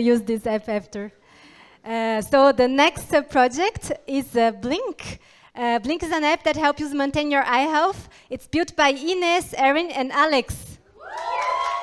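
A young woman speaks with animation through a microphone.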